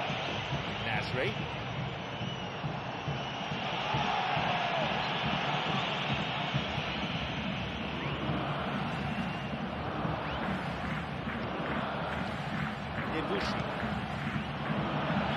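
A football is kicked with dull thuds now and then.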